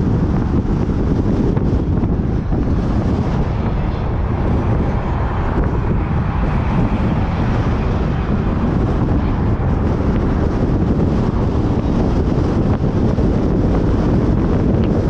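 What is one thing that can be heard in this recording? Tyres roar steadily on a paved road.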